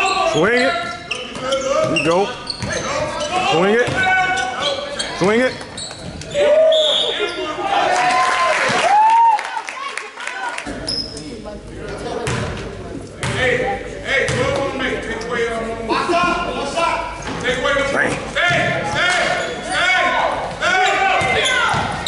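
Spectators talk and call out nearby.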